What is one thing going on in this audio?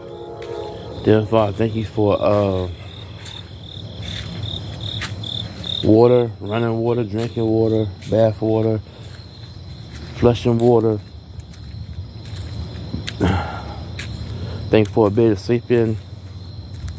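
A man talks quietly close by.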